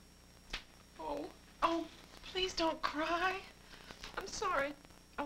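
A young woman speaks with emotion nearby.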